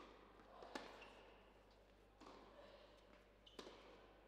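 Sneakers squeak briefly on a hard court.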